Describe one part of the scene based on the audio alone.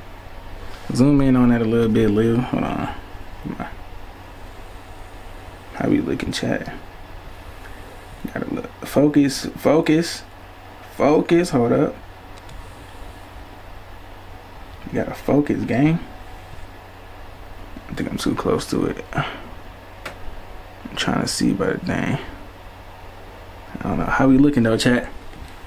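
A young man speaks calmly in short phrases close to a microphone.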